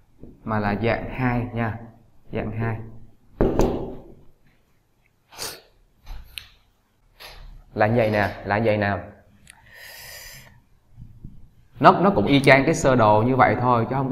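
A young man speaks calmly and clearly, as if teaching.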